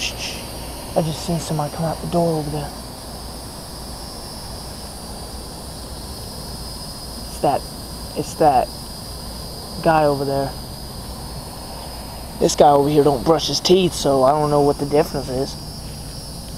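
A young man speaks close by in short, scattered bursts.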